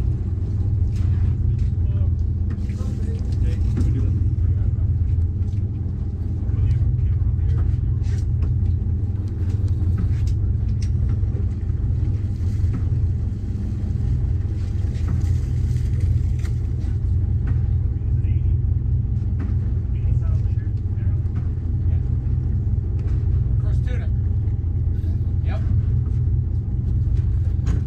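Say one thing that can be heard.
Waves slap against the hull of a boat.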